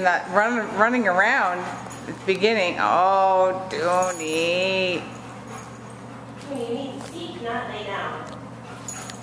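A woman speaks in a high, animated, sing-song voice close by.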